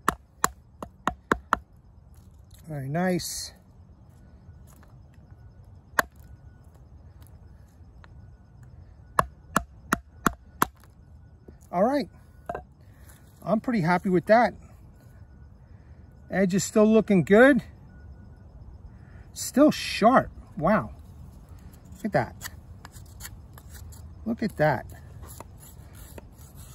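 A knife shaves and splits thin strips from a wooden stick.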